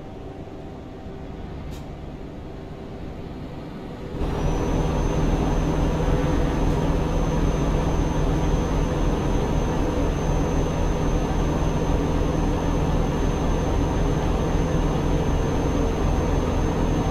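A truck engine hums steadily at cruising speed.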